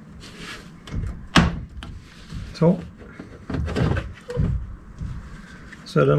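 Plastic clips click and snap as a car light is pried loose.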